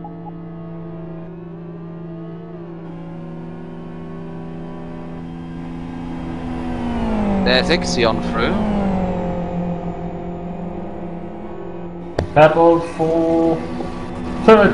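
A race car engine idles with a steady hum, rising and falling in pitch now and then.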